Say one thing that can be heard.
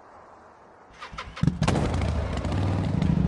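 A motorbike engine starts and revs loudly.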